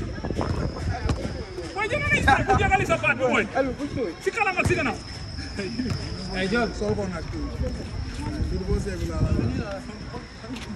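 A young man speaks to a group outdoors.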